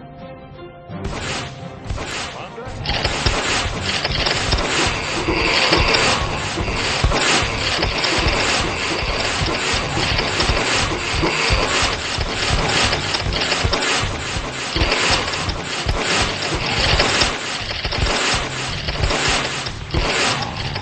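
Game turrets fire rapid shots.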